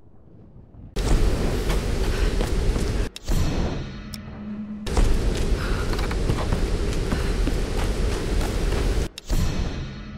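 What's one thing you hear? Footsteps thud on rock and wooden planks.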